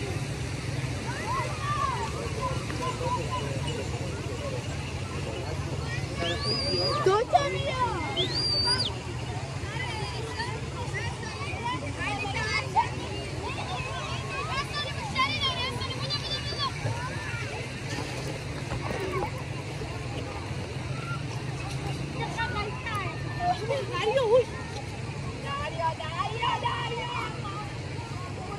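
A crowd of people chatters at a distance in an open outdoor space.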